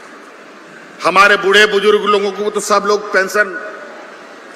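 A man speaks into a microphone over loudspeakers in a large echoing space.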